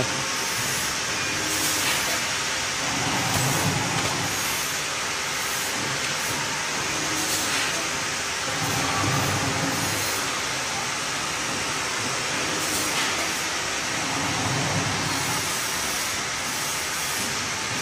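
A packing machine hums and whirs steadily.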